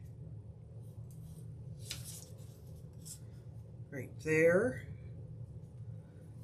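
Hands rub and smooth paper on a board.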